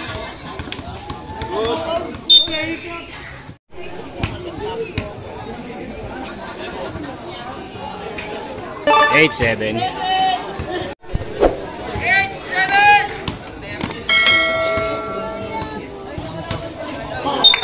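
A basketball bounces on a concrete court.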